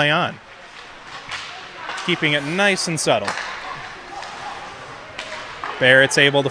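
Skates scrape and swish across the ice.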